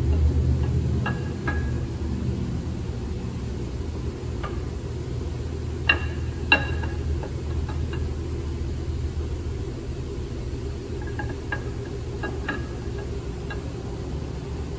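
Metal parts clink and tap as a camshaft slides out of an engine.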